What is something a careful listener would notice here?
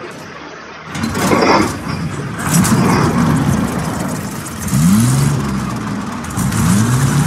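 A machine rumbles and hisses loudly.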